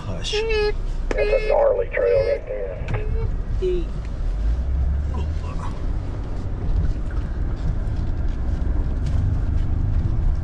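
A vehicle engine rumbles low and steady.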